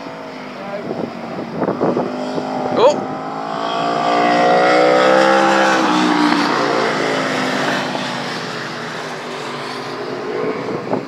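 Motorcycle engines roar loudly as they race past and fade.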